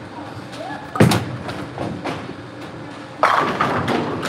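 A bowling ball thuds onto the lane and rolls away.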